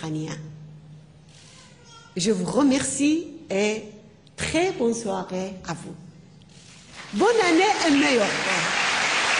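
A woman speaks warmly into a microphone in a large hall.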